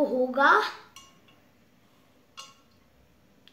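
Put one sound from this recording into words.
A spoon clinks against a glass jug.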